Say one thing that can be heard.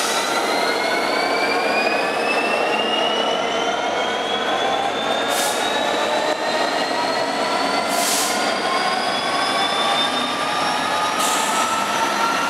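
A diesel locomotive engine whines and rumbles loudly as it pulls slowly away.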